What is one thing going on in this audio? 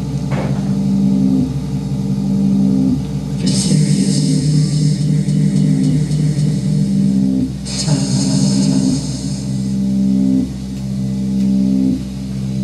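Sustained electronic keyboard chords play, echoing in a large room.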